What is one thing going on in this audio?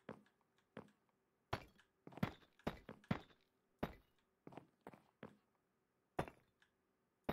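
Stone blocks are placed with short, dull knocks at an uneven pace.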